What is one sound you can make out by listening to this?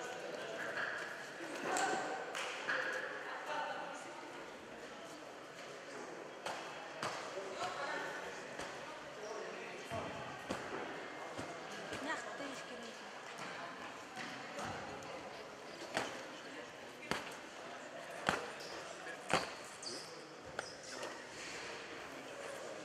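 Feet thud and shuffle on a padded mat.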